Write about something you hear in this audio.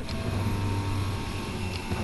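A laser beam buzzes.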